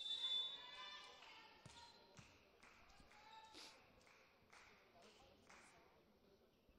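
A volleyball bounces on the floor several times.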